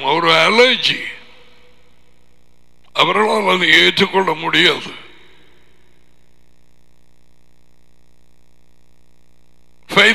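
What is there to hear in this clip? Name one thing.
An older man speaks calmly and closely into a headset microphone.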